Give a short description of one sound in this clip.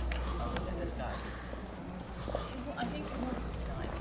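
A group of people talk nearby outdoors.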